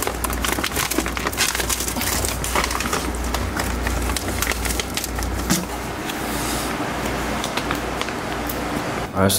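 A plastic treat bag crinkles and rustles close by.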